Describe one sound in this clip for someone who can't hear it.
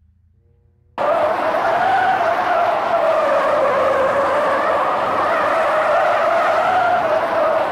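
A race car engine whines steadily as it drives.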